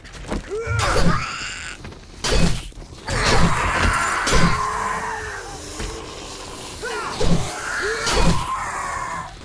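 A blade strikes flesh with heavy thuds.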